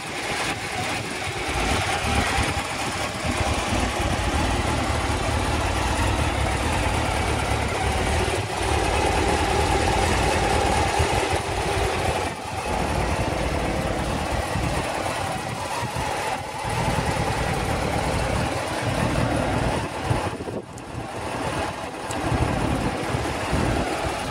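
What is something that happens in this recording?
A motorcycle engine idles close by with a steady, rough rumble.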